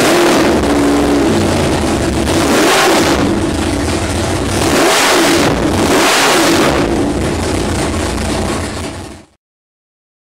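A big engine roars loudly up close, revving up and down in waves.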